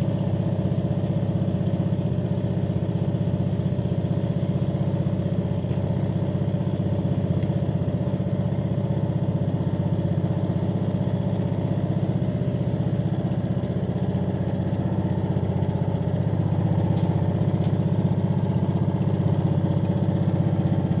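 A small boat engine chugs steadily close by.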